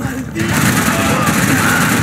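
Gunshots ring out loudly.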